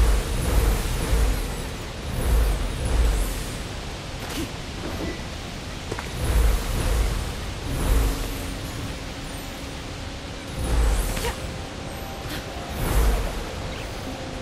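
A magical shimmering effect whooshes and booms in deep pulses.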